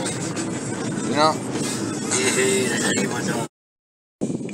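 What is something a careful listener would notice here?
A young man talks close by inside a car.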